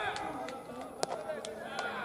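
A pitched baseball smacks into a catcher's mitt.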